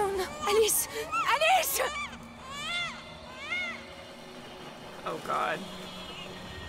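A young woman speaks excitedly into a microphone, close up.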